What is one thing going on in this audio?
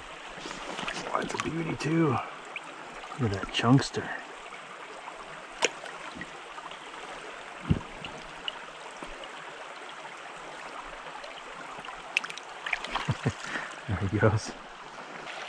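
Water splashes as a fish is handled in the stream.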